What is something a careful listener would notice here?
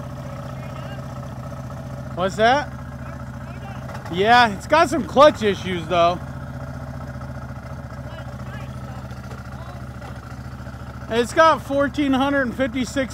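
An all-terrain vehicle engine idles steadily.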